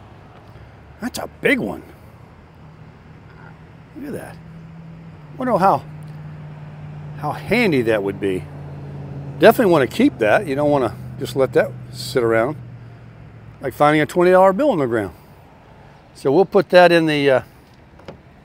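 A middle-aged man speaks calmly and close by, explaining.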